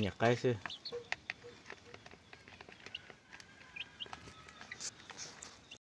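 Chicks peck at a plastic feeder with light taps.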